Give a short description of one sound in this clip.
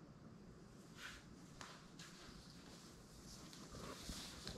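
Bare feet pad softly across a hard floor.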